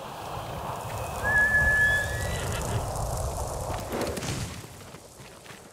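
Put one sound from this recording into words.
Footsteps scuff along a dirt path.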